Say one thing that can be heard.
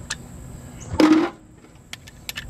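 An air impact wrench rattles briefly.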